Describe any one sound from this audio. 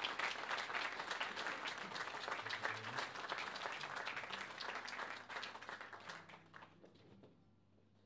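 Two acoustic guitars play softly in a large hall.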